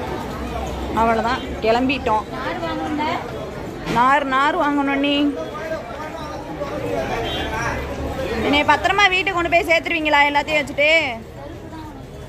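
Women talk with animation close by.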